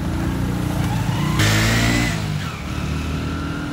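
A motorbike engine revs and pulls away.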